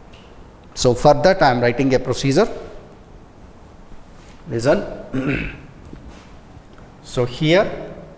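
A man speaks calmly into a clip-on microphone, close by.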